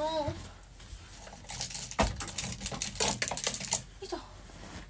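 Clothes and hangers rustle and clatter in a closet.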